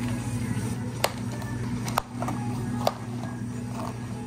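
Plastic lids snap onto cups of ice.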